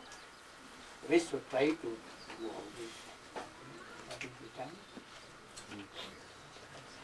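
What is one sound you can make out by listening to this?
An elderly man speaks calmly into a clip-on microphone.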